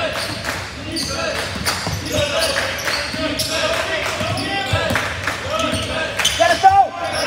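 Sneakers squeak sharply on a gym floor, echoing in a large hall.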